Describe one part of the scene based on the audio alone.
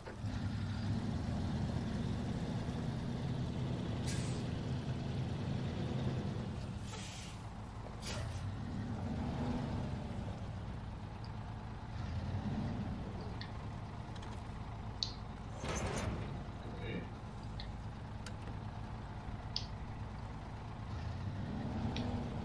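A truck engine rumbles low and steady, rising and falling as the truck drives and reverses.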